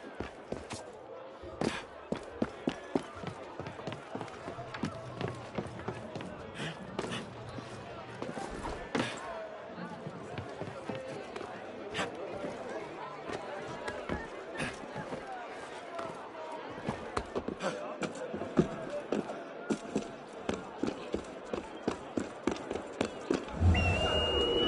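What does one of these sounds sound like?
Footsteps patter and scrape quickly across roof tiles.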